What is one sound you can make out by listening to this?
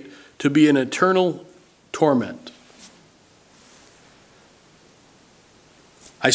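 An older man speaks calmly and with emphasis into a microphone, with pauses.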